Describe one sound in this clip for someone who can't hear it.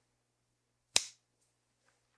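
A man snaps his fingers once, close by.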